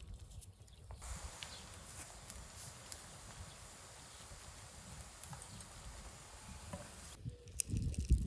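Broth simmers and hisses softly in a pot.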